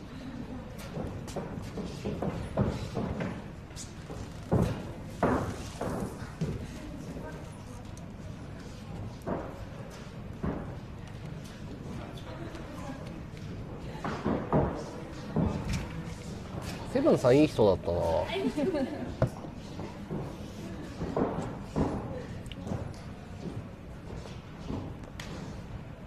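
Bare feet thump and shuffle on a springy ring floor.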